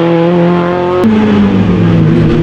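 A rally car engine drops sharply in pitch as the gear changes.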